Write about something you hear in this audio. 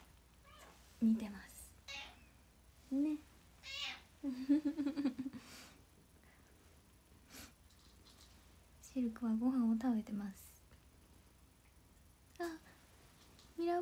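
A young woman talks cheerfully and close by, now and then laughing.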